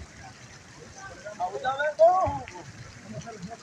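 A man sings into a microphone.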